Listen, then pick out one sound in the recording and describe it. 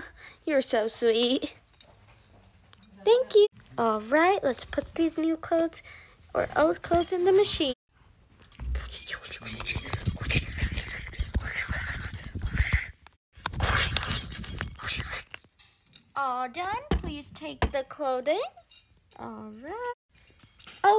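A young girl talks playfully in character voices, close by.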